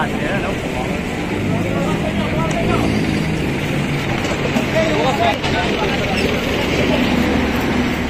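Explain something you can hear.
Several men talk at once outdoors in a busy street crowd.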